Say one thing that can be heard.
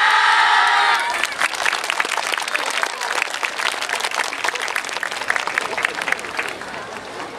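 An audience claps in fast, steady applause.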